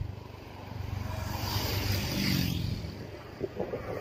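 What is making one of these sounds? A motorbike passes close by.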